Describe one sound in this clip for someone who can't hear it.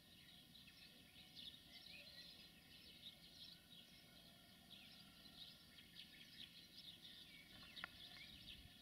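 A freight train rumbles slowly along the tracks.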